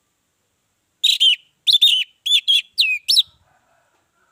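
An orange-headed thrush sings in short, clear bursts.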